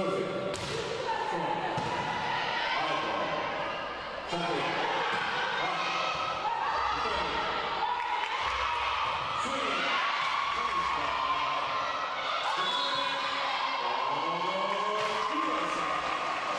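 Young players call out to each other in a large echoing hall.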